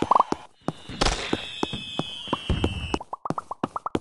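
Fireworks crackle and whistle briefly.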